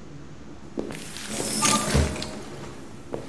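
A door slides open with a whoosh.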